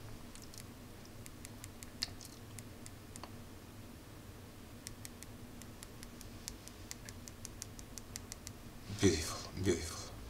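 A plastic stylus taps lightly and quickly on a touchscreen.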